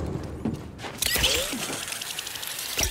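A pulley whirs along a cable.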